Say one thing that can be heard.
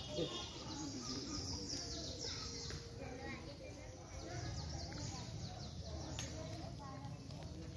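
Footsteps shuffle slowly on a stone path.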